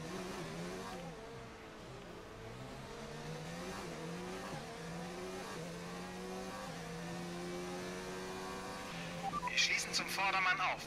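A racing car engine whines and rises in pitch again and again as it shifts up through the gears.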